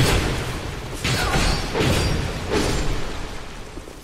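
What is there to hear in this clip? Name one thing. Sword blows land with heavy, ringing hits.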